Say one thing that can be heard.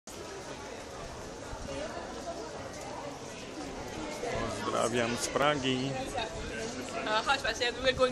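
A crowd murmurs in the background of a busy street.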